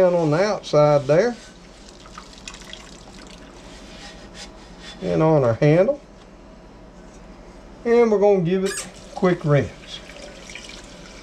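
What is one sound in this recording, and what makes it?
Water sloshes in a sink.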